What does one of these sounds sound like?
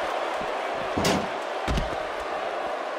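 Heavy thuds of bodies hitting hard surfaces ring out.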